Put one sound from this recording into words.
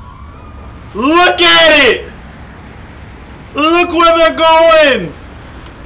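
A man shouts loudly through a microphone.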